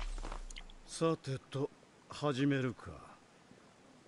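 A character in a game speaks in a deep, calm man's voice.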